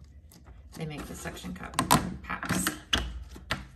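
Soft silicone pieces rub and squeak as hands handle them.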